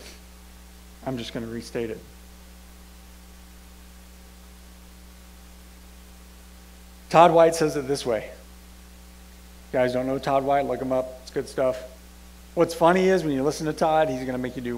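A man speaks calmly through a microphone in a large room, with pauses.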